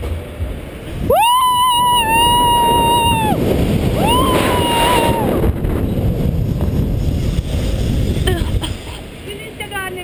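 Wind rushes loudly past a falling person.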